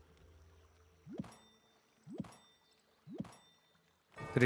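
A game countdown sounds three short rising tones.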